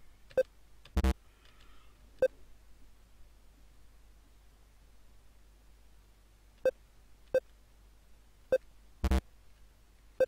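A harsh electronic buzz sounds when a game ends.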